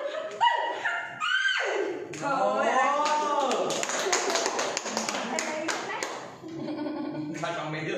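A woman talks with animation close by.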